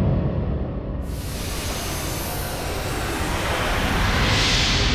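A bright, rising whoosh swells and grows louder.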